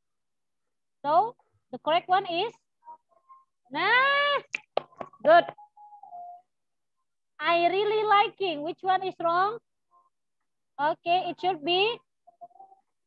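A woman speaks animatedly and slowly through an online call.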